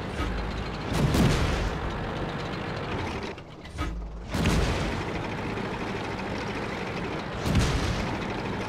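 A tank gun fires with a loud boom.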